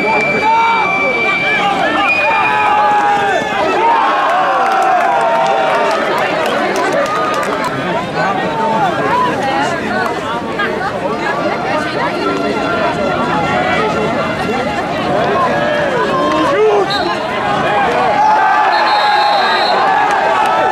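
Players shout to each other across the field.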